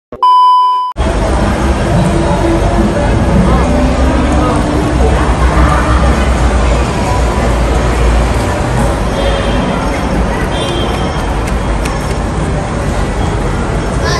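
A busy street crowd murmurs outdoors with a low rumble.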